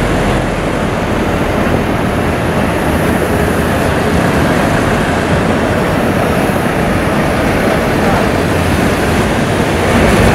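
A car drives past on a wet street.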